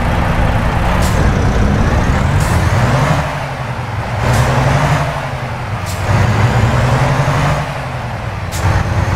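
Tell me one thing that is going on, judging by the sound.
A truck engine revs up and down as the gears shift.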